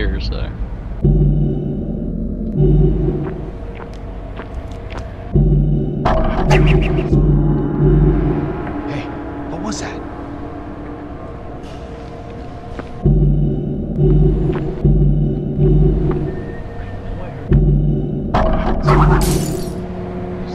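Deep electronic pulses throb in a steady beat.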